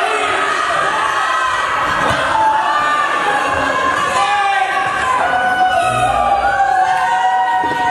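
A crowd of children and adults chatters and calls out in a large echoing hall.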